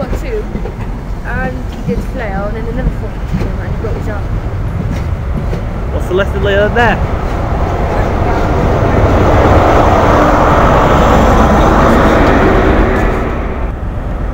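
A train rumbles past close by on the tracks.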